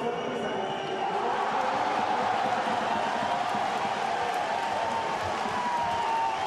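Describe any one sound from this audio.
A crowd in a stadium roars and jeers.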